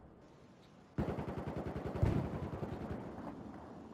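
An assault rifle fires rapid bursts at close range.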